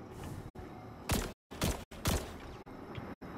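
Shots from a rifle ring out, a few at a time.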